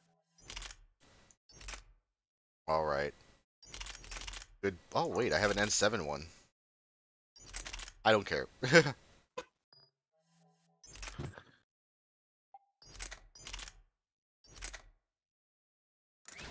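Short electronic menu clicks sound as selections change.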